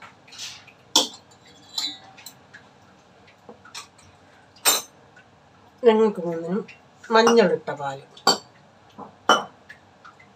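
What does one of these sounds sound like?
Metal cups clink against a hard surface.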